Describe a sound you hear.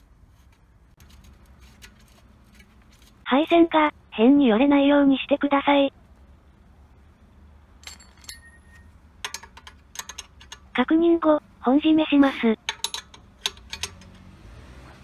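A ratchet wrench clicks in quick bursts.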